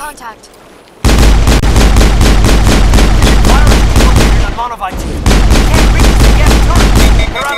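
A rifle fires in rapid loud bursts.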